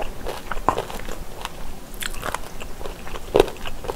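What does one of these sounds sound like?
Chopsticks click against a plastic container.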